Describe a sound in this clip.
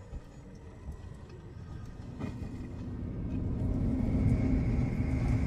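A deep engine rumble grows steadily louder.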